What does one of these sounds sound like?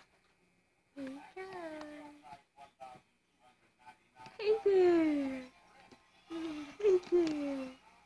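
A baby babbles and squeals loudly close by.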